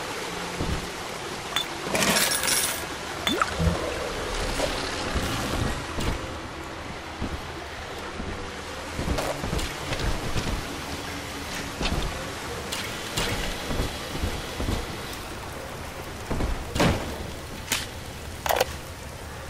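Electricity crackles and buzzes in short bursts.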